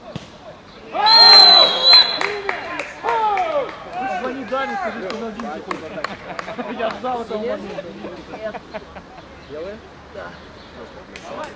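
Teenage boys shout and cheer excitedly outdoors.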